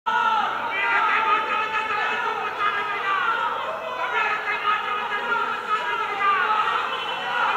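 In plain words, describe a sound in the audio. A crowd of men shout and cheer nearby.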